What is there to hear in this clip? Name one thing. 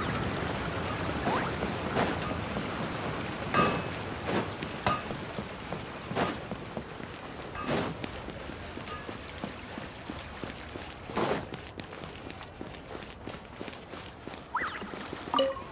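Quick footsteps patter on stone and wooden boards.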